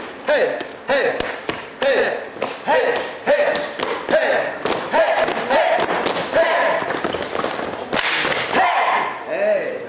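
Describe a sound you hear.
Dancers' feet stomp on the floor in rhythm.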